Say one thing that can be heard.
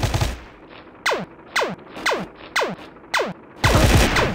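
A gun fires glowing energy shots in quick bursts, each with a falling whine.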